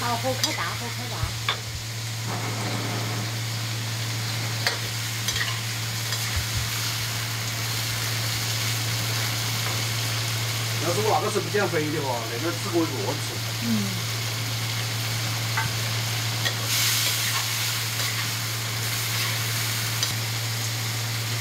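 A metal spatula clicks and scrapes against a wok.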